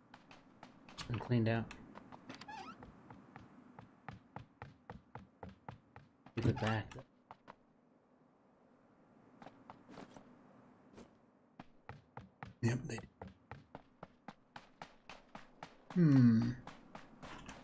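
A young man talks briefly through a microphone.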